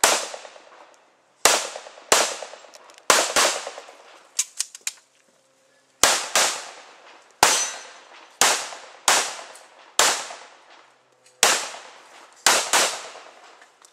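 A pistol fires shots in quick pairs outdoors, each shot ringing out and fading.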